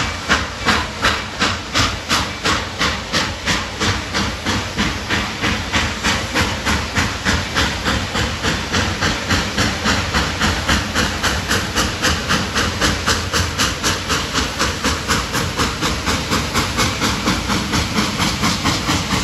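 A steam locomotive chuffs steadily in rhythmic puffs as it approaches.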